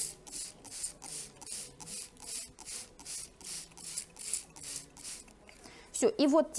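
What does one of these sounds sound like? A spray bottle hisses in quick, even bursts.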